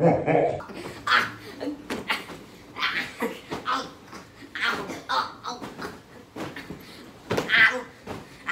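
A young girl squeals and laughs close by.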